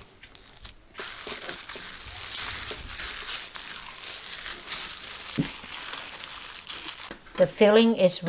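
A gloved hand squishes and kneads a wet mixture.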